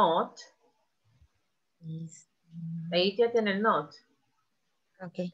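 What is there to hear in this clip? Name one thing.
A woman speaks through an online call in short phrases with pauses.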